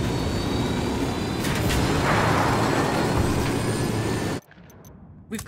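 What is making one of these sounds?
A helicopter flies, its rotor thudding.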